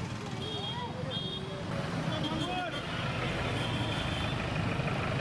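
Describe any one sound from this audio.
Vehicle horns honk briefly.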